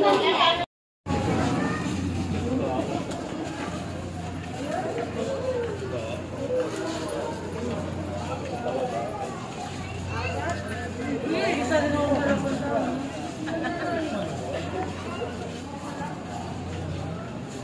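People talk in the background outdoors.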